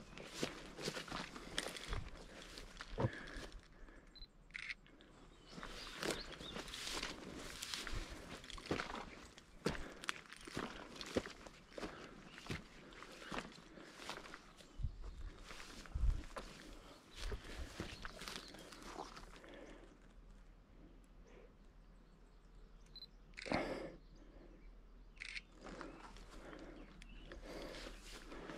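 Footsteps crunch and rustle through dry grass outdoors.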